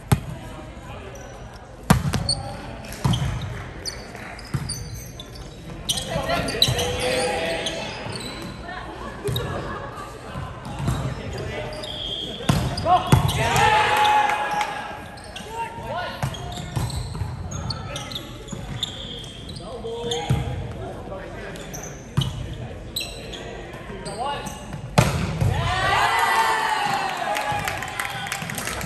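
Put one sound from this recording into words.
Young players call out and shout to each other in an echoing hall.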